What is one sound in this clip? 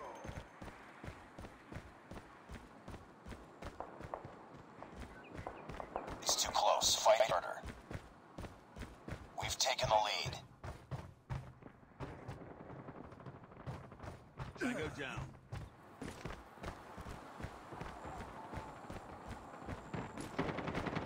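Footsteps run quickly over sand and wooden floors.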